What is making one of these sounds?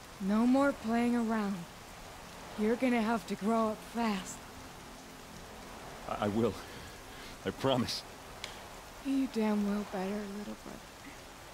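A young woman speaks weakly and close by.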